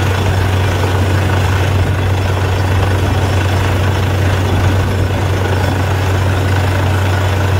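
A drilling rig engine roars loudly and steadily.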